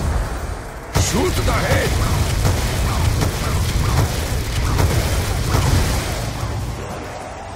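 Explosions boom and crackle loudly.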